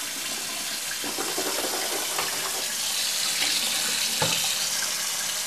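Water splashes as a man rinses his face.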